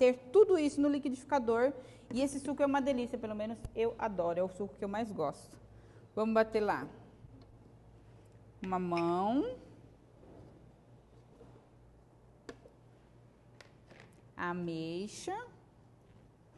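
A woman speaks calmly and clearly close by.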